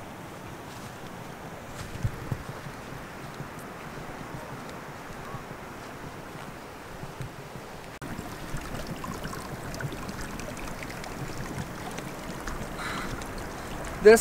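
Footsteps crunch softly through grass and stones.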